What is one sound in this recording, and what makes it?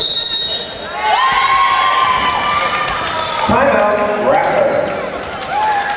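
A crowd cheers and claps in a large echoing gym.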